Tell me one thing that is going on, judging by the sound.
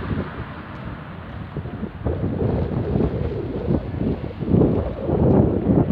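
Thunder rumbles in the distance.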